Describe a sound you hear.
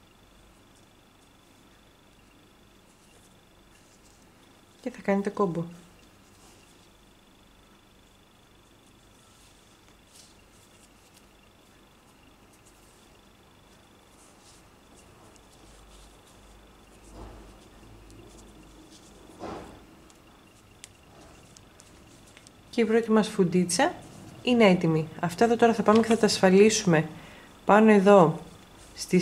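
Yarn rustles softly as hands tie it.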